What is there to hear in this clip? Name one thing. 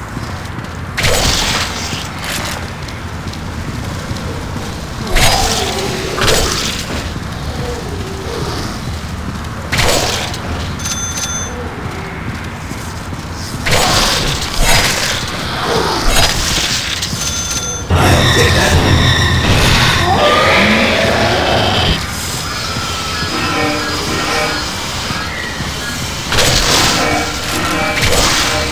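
Swords swish and slash with wet, fleshy hits.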